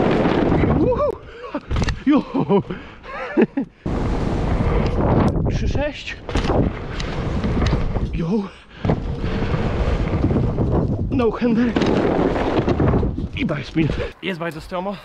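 Wind rumbles loudly past a rider moving fast outdoors.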